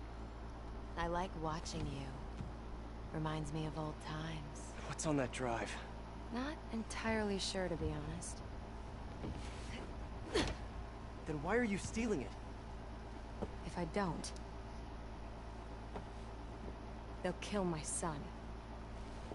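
A woman speaks calmly and playfully, close by.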